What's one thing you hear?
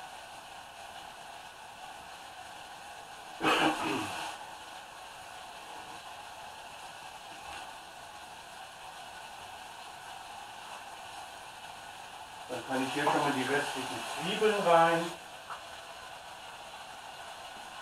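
A pot simmers quietly on a stove.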